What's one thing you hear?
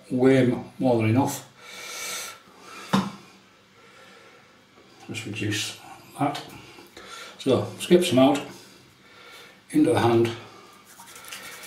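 A middle-aged man speaks calmly close to the microphone.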